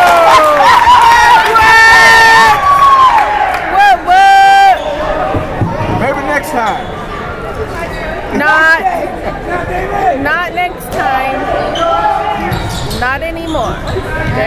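A crowd in a large echoing gym cheers and shouts.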